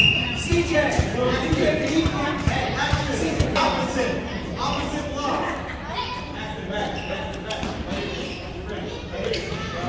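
A crowd of spectators talks and calls out in an echoing gym.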